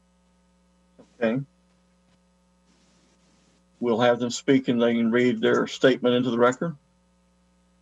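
An older man speaks calmly over an online call.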